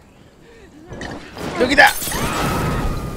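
A glass bottle shatters and bursts into roaring flames.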